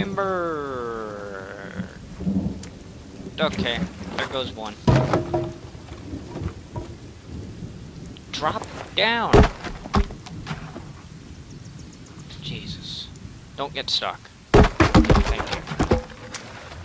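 Footsteps thud on rough ground.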